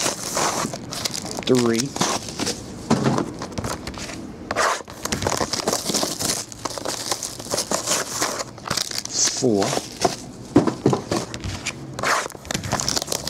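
Hands handle cardboard boxes, which slide and knock on a table.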